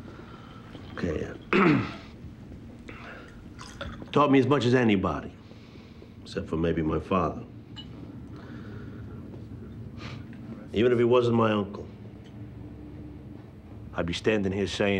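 A middle-aged man speaks loudly and with feeling, giving a toast.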